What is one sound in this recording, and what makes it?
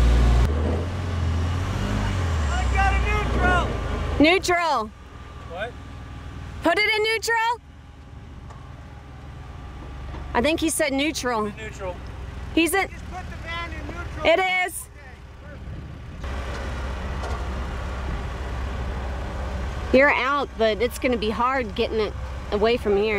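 A van engine revs hard.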